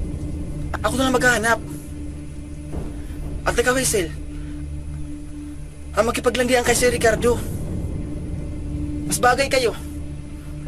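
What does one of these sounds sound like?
Another young man answers in a low, earnest voice.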